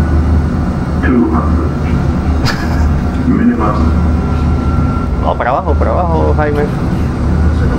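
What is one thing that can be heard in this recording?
A young man laughs nearby.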